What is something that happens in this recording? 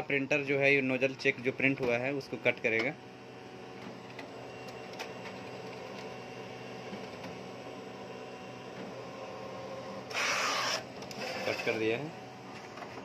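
A printer hums steadily as it feeds paper.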